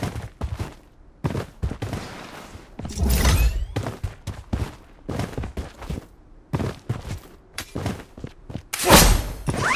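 Footsteps thud quickly over hard ground and grass.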